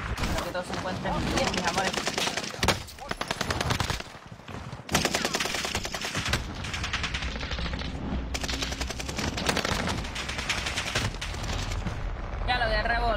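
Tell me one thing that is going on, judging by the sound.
Rapid gunfire cracks in bursts.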